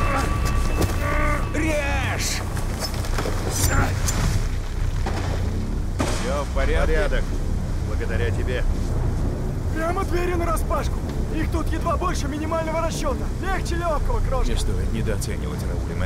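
A man speaks tersely nearby.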